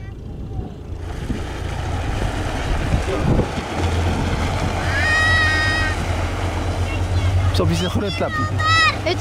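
A sled scrapes and rumbles over a dirt road.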